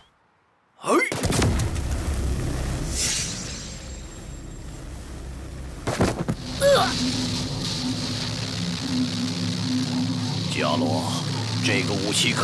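An energy blast roars and crackles loudly.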